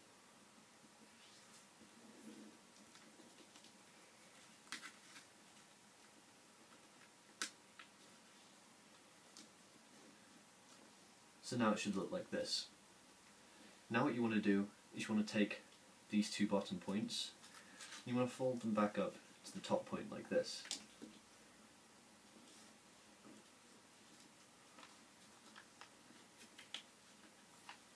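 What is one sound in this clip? Paper rustles and creases softly as it is folded by hand.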